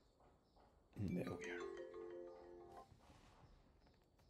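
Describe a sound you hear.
A phone ringtone plays.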